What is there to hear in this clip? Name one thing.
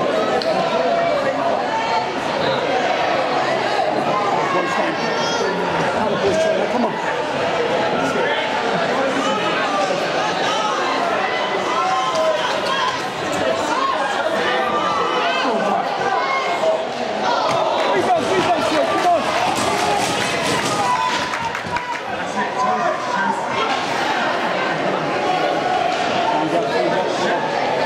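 A crowd of spectators chatters and cheers in an echoing ice rink.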